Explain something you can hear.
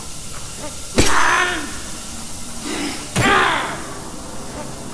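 A monster lets out a sudden, harsh screech.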